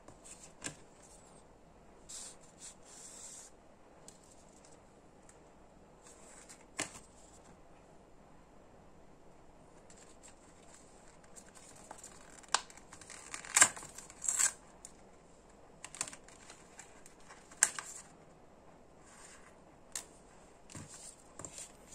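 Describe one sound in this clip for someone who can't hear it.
Paper packaging rustles and slides in hands.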